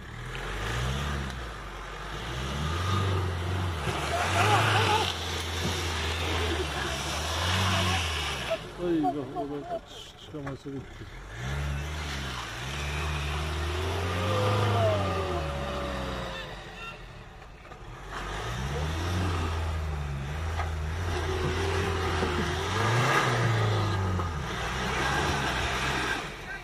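A truck engine revs up and down, straining through mud.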